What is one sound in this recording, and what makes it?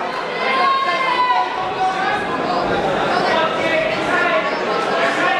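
A crowd of people chatter loudly in a large echoing hall.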